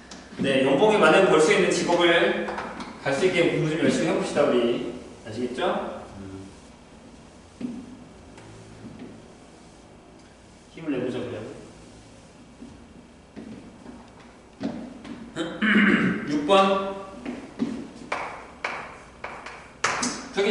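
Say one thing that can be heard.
A young man speaks calmly, close by, with pauses.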